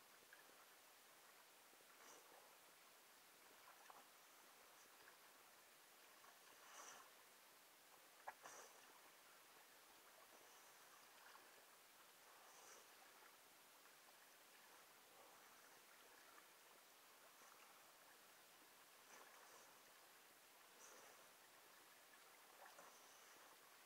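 Water splashes as hands paddle through it.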